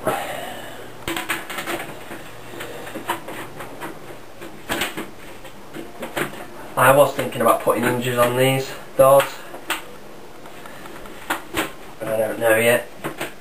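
A plastic panel clicks and knocks as it is handled.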